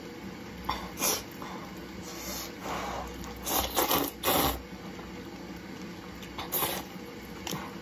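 A young woman slurps noodles loudly and close by.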